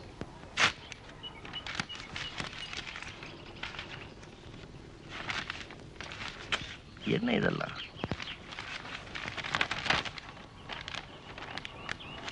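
Paper rustles and crinkles as hands handle an envelope and banknotes.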